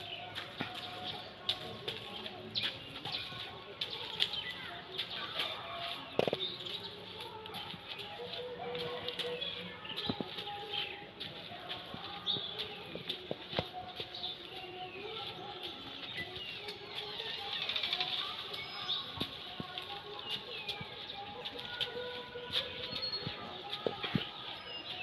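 An elephant's heavy feet thud softly on dirt.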